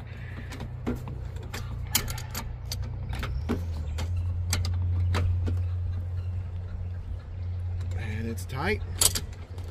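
A wrench clicks and scrapes against a metal pipe fitting.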